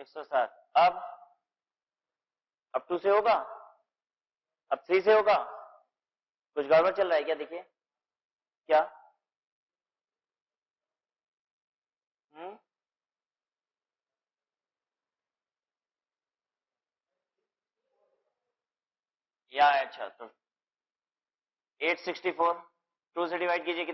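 A man speaks calmly in short phrases through a microphone.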